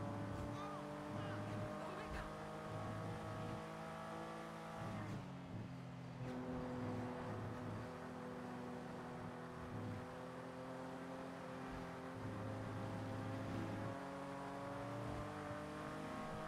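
A car engine drones steadily at high speed, briefly dipping in pitch as it shifts gear.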